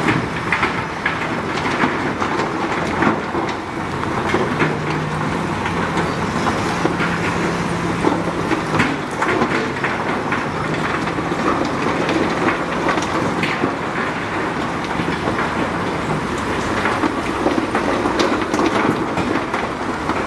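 Rocks and dirt rumble and clatter as they slide out of a dump truck.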